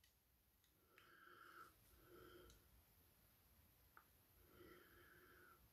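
Paper rustles softly.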